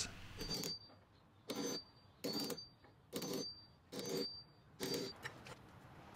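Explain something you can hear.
A hammer taps a nail set into wood in a steady series of knocks.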